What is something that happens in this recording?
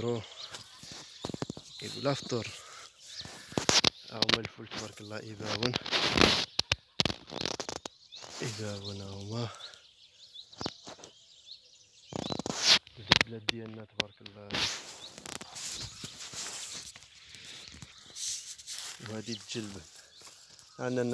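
A young man talks calmly close to a phone microphone.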